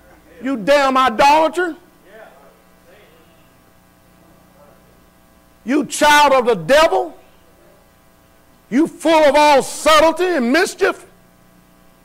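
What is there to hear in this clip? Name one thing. A man preaches loudly and with passion through a microphone, pausing between phrases.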